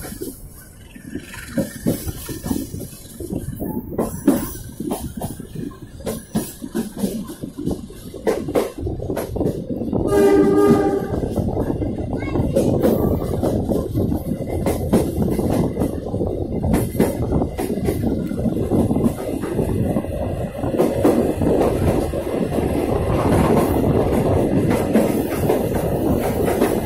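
A train rumbles along the tracks, its wheels clattering rhythmically over the rail joints.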